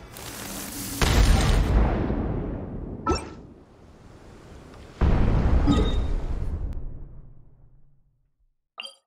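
A cannon fires with deep booming blasts that rumble and fade.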